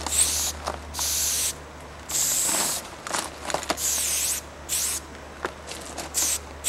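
A spray can hisses in short, sharp bursts close by.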